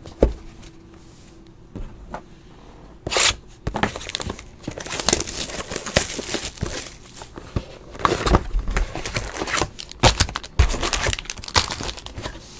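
A cardboard box rustles and scrapes as it is handled close by.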